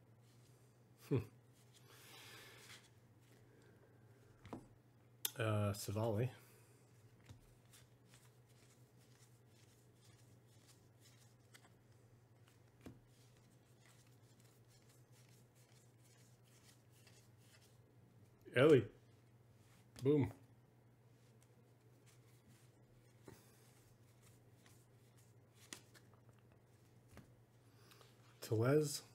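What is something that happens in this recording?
Trading cards slide and rustle as they are flipped through by hand.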